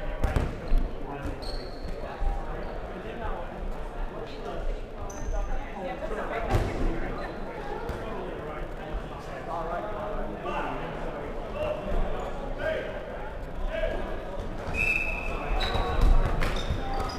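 Young players call out and shout in a large echoing hall.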